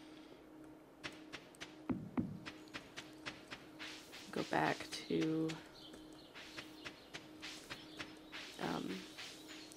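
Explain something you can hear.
Light footsteps patter quickly on a dirt path.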